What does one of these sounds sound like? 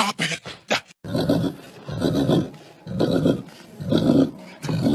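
A dog howls loudly.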